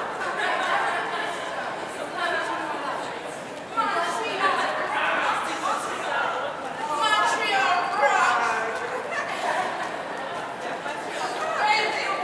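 A crowd of young women chatter and laugh all around.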